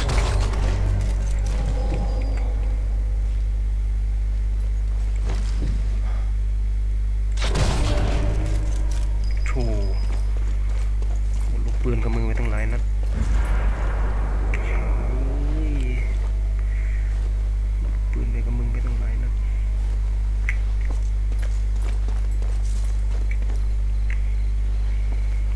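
Footsteps scuff on stone paving.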